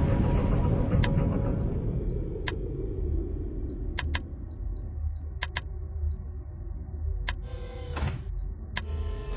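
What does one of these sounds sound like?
A mouse button clicks now and then.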